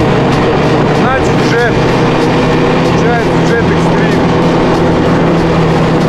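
A man talks loudly close by, over the engine.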